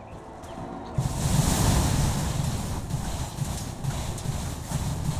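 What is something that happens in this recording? A magic spell bursts with a loud whoosh and crackle.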